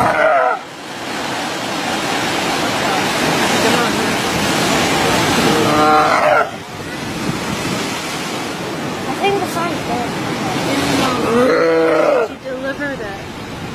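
Surf washes steadily onto a nearby shore.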